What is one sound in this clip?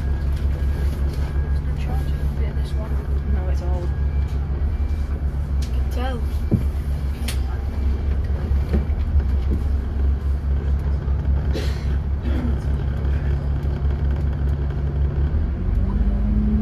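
A bus drives slowly past on wet tarmac.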